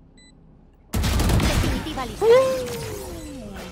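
A rifle fires a burst of loud shots.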